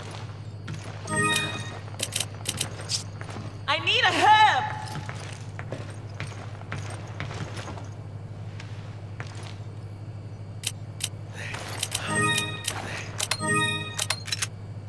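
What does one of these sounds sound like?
Short electronic chimes ring out now and then.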